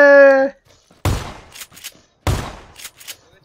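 A shotgun fires twice with loud, echoing blasts.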